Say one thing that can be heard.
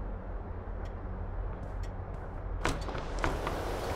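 A window swings open with a creak.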